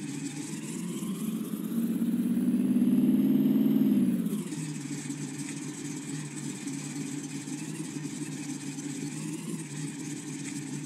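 A truck engine revs loudly, then drops to a low rumbling idle.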